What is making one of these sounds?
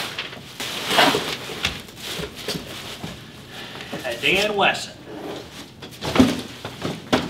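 A hard plastic case knocks and clatters.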